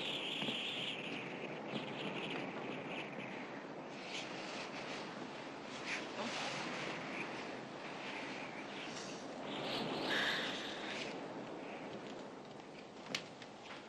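A man's footsteps move softly across a room.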